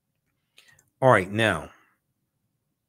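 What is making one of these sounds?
A man speaks briefly and with animation, close to a microphone.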